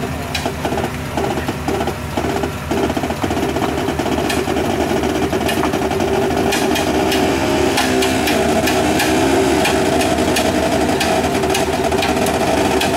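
A vehicle engine runs steadily close by.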